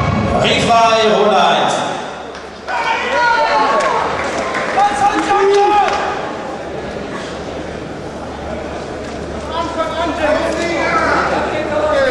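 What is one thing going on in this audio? A man speaks loudly.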